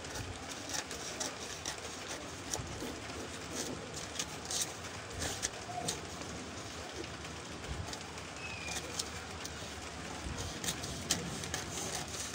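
Scissors snip through paper.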